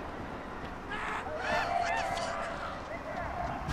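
A young woman exclaims in surprise.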